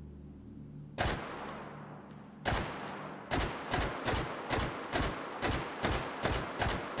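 A rifle fires shot after shot, with a sharp crack and a short ringing echo, getting faster toward the end.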